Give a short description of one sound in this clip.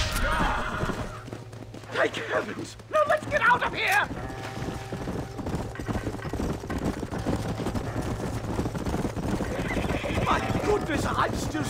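Horse hooves clop on a dirt track.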